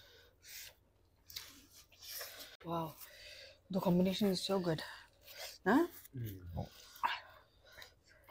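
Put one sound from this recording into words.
People chew and crunch food noisily, close to a microphone.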